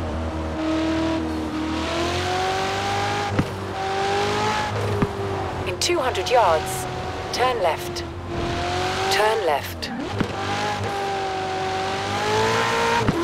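A sports car engine roars steadily, rising and dipping in pitch as the gears shift.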